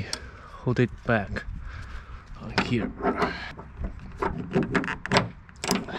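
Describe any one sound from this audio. A metal hook clinks against a metal frame.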